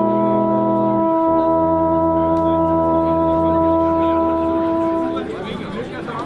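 Several alphorns play a long, steady chord together outdoors.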